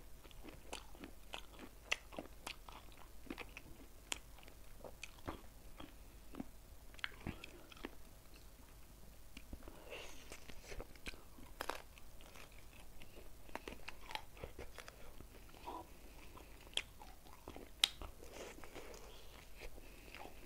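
A person chews food noisily close to a microphone.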